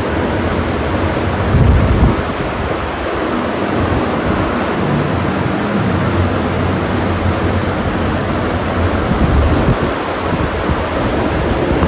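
Electric fans whir steadily, blowing air with a low rushing hum.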